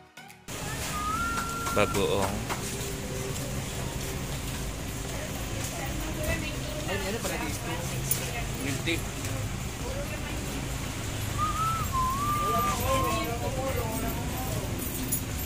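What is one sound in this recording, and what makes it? A man talks with a vendor at close range.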